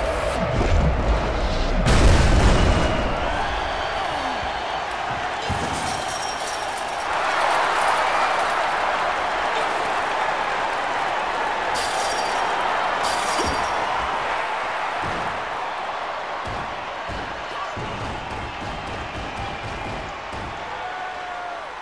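A crowd cheers loudly throughout.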